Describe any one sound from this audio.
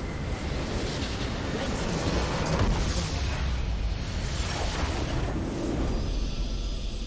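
A structure explodes with a loud crumbling blast.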